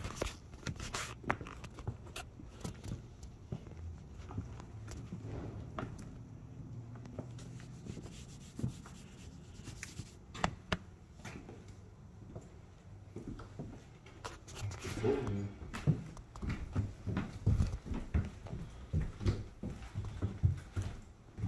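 Footsteps scuff on a hard floor.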